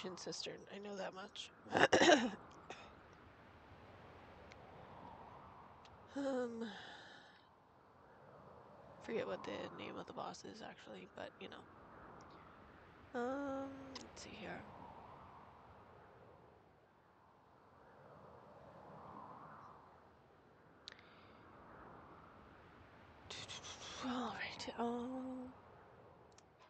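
A young woman speaks with animation into a close microphone, in short bursts.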